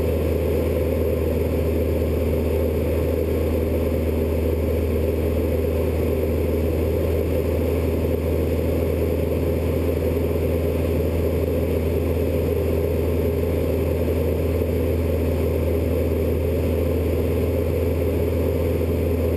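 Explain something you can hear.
A small propeller plane's engine drones steadily inside the cabin.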